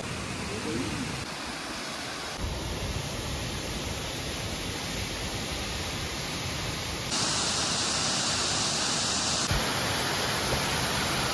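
A waterfall rushes and splashes steadily.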